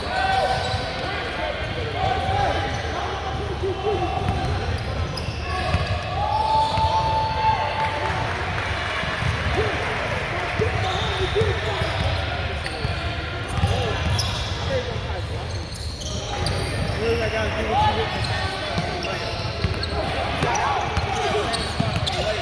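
Players and spectators shout and talk in a large echoing gym.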